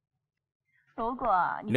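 A woman speaks sharply.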